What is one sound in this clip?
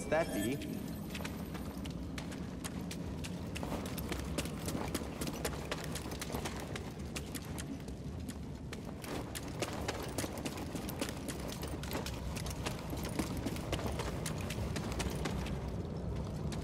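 Footsteps run quickly over a rocky floor.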